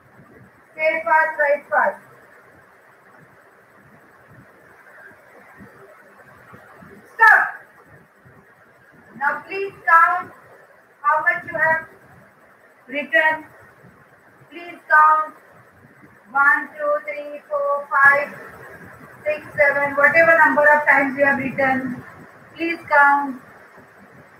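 A young woman speaks clearly and calmly in short phrases, close by.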